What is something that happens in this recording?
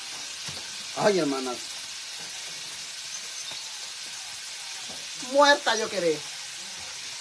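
A middle-aged woman speaks in short bursts close by.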